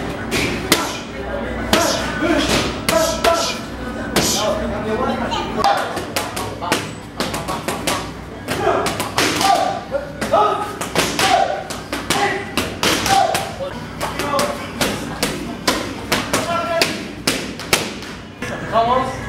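Gloves thud hard against punching pads in quick bursts.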